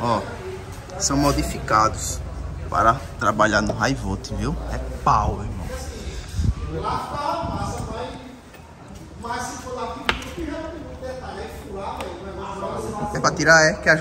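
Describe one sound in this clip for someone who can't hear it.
A young man talks with animation close by.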